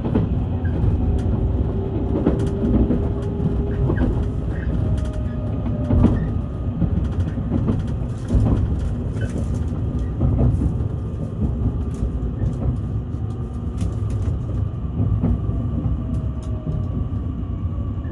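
Train wheels clatter and knock over rail joints.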